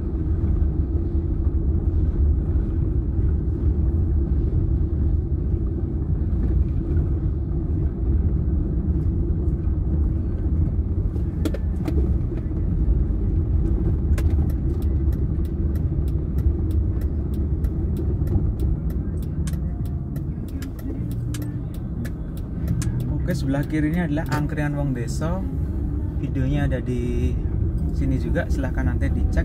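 Rain taps on a windshield.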